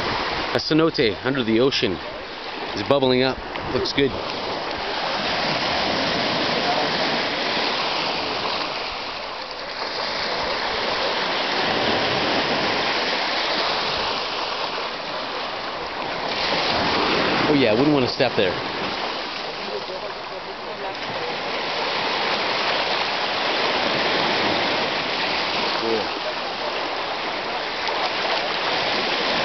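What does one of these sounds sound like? Small waves wash and splash over the sand.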